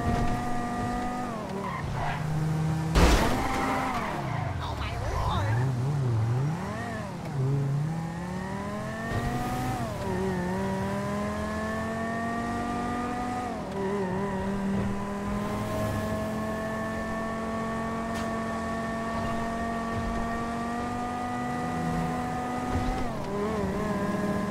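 A car engine revs and shifts gears as it speeds along.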